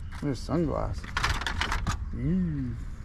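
Plastic sunglasses clatter as a hand sorts through them.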